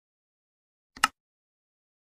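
A mouse button clicks once.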